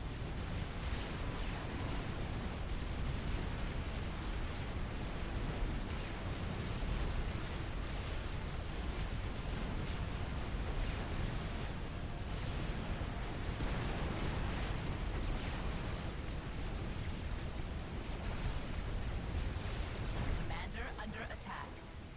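Guns fire and shells burst in a busy battle.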